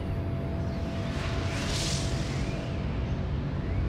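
A bright whoosh swells and fades away.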